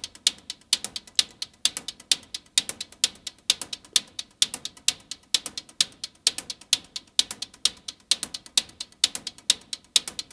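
A modular synthesizer plays a fast, repeating pattern of sharp electronic clicks and ticks.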